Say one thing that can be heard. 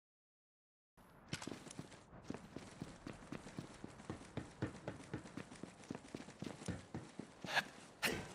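Footsteps crunch steadily over snow.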